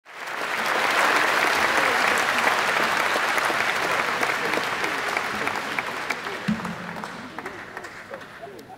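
A large crowd cheers and shouts in an echoing hall, slowly fading.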